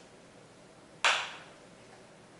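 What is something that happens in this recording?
A plastic bottle cap clicks open.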